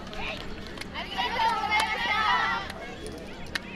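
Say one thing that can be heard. A group of young dancers shouts in unison outdoors.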